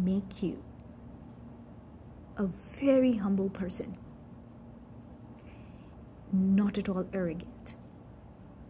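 A woman speaks calmly and closely to a microphone, with pauses.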